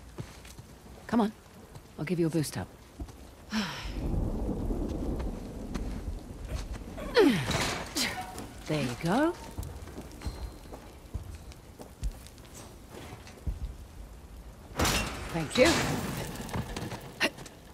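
A young woman speaks calmly and close by.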